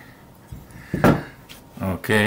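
A narrow piece of wood knocks onto a wooden surface.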